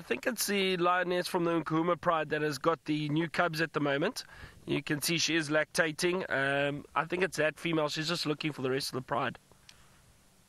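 A man speaks calmly into a radio handset, close by.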